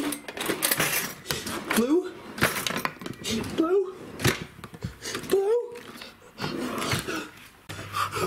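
A fridge drawer slides open and shut.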